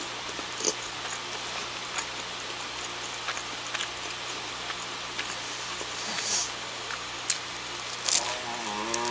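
A woman chews food with wet, smacking mouth sounds close by.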